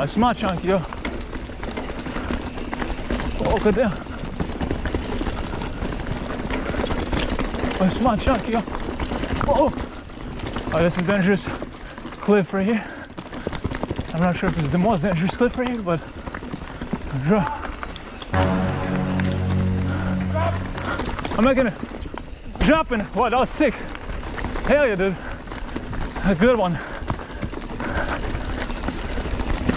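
A bicycle's frame and chain rattle over bumps.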